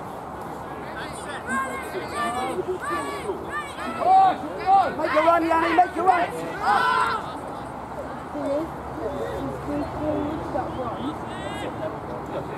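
Young men shout loudly outdoors in the open.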